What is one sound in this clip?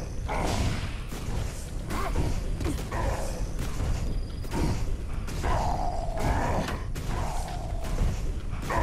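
Weapon blows and magic blasts crack and whoosh in a fight.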